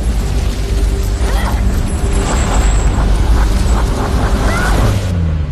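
Waves crash and roar in a heavy storm.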